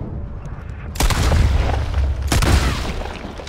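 A shotgun fires a loud blast.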